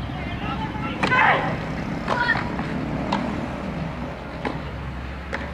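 Tennis rackets strike a ball back and forth in a rally.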